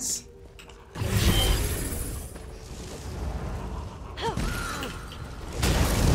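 A burst of magic explodes with a roaring rush.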